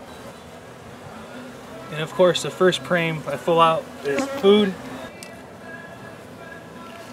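Bees buzz softly around a hive.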